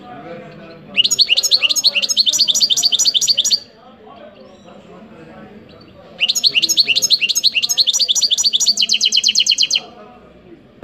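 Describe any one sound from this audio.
A small bird sings close by in fast bursts of shrill, rapid chirps.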